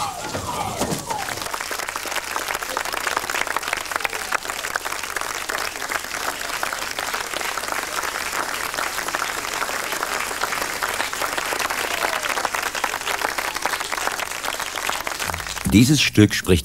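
An audience claps loudly and steadily.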